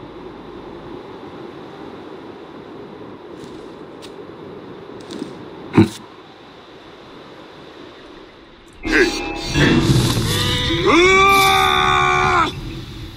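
A man talks calmly into a microphone, close by.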